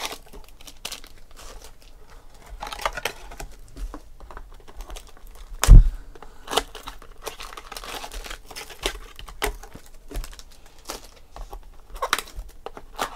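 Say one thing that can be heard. Foil wrappers crinkle and rustle in hands.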